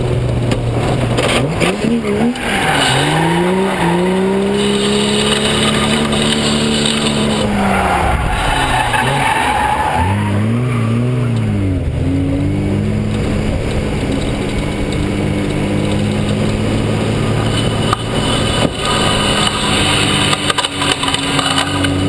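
Tyres squeal loudly on the road surface.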